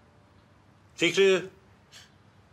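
An elderly man speaks up briefly and sharply.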